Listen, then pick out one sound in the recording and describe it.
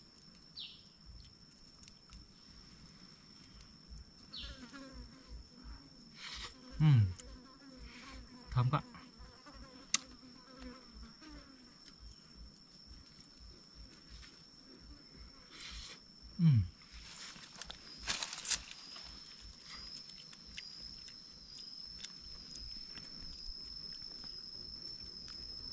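A man cracks and peels a small dry shell with his fingers.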